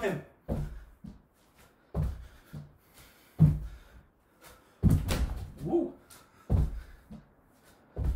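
A man breathes hard with effort.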